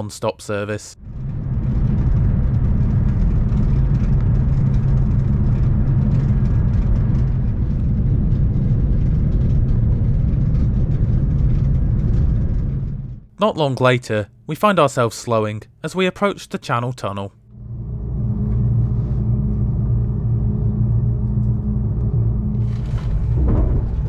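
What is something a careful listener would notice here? A train rumbles steadily along the tracks, heard from inside a carriage.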